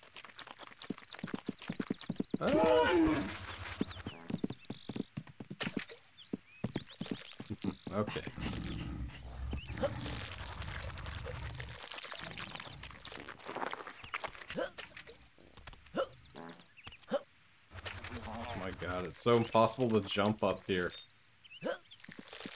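Cartoonish video game sound effects play.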